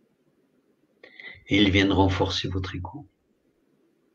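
A middle-aged man speaks briefly through an online call.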